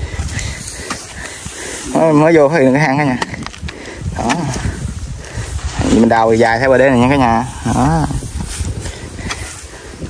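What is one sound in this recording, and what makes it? A hoe chops into wet soil with dull thuds.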